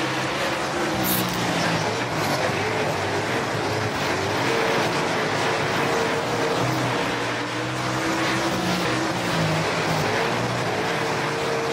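Tyres skid and spray loose dirt.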